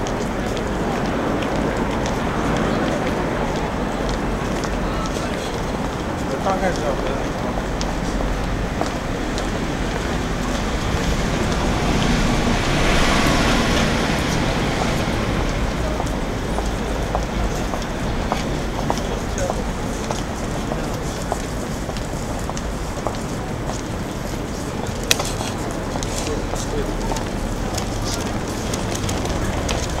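A busy street crowd murmurs steadily in the background.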